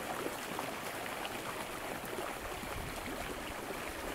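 Shallow water splashes softly.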